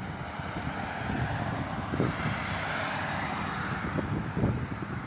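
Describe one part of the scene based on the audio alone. A car drives past close by with a rising and fading whoosh of tyres.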